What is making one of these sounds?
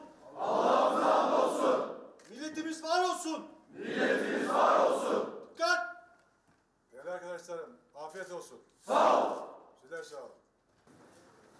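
Men shout loudly in short bursts.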